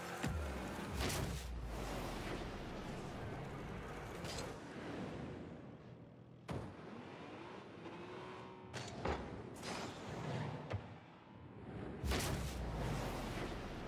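A goal explosion bursts with a loud boom.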